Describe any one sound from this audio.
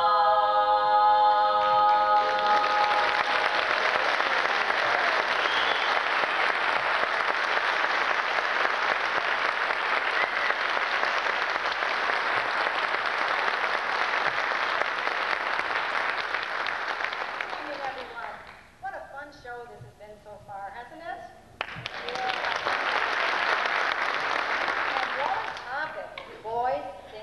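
A group of women sing together in harmony through microphones.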